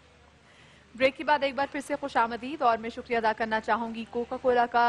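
A woman chants melodically through a microphone.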